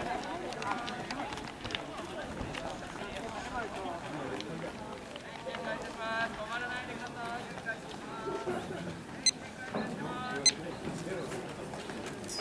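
Young men and women chatter nearby outdoors.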